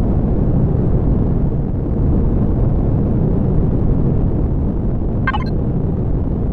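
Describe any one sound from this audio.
A vehicle engine rumbles low and steadily.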